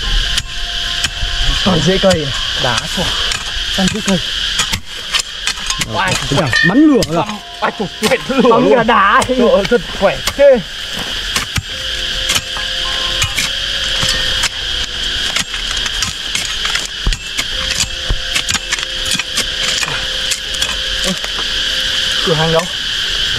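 A metal tool strikes and scrapes into soil with dull thuds.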